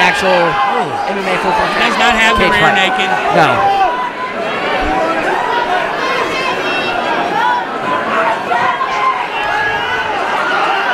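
A crowd shouts and cheers loudly nearby.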